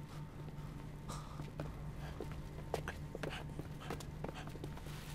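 Footsteps scuff softly on a concrete floor.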